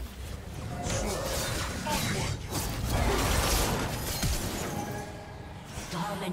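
Game spell effects whoosh and crackle in quick bursts.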